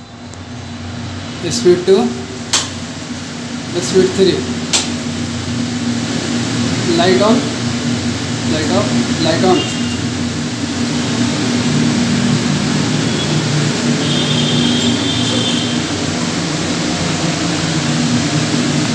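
A range hood fan hums steadily.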